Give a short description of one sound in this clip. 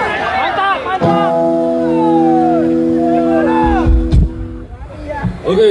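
A band plays a sustained chord through loud speakers.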